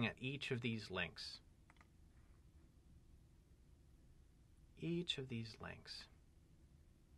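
A man speaks calmly and clearly into a close microphone, in short phrases with pauses.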